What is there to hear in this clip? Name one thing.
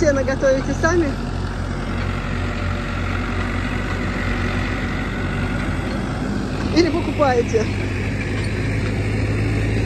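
A baling machine whirs and rattles behind a tractor.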